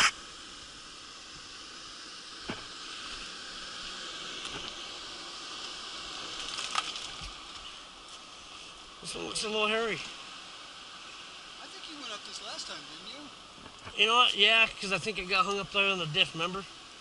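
Tyres crunch and grind over loose rocks.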